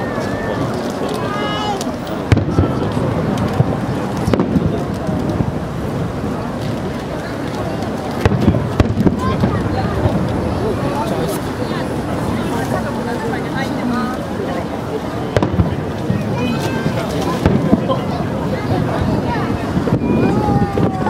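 Fireworks crackle and fizz overhead.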